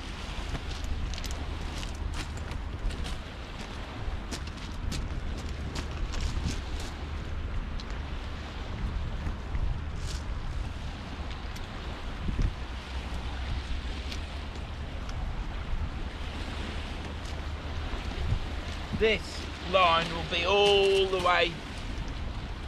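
Wind blows steadily across the microphone outdoors.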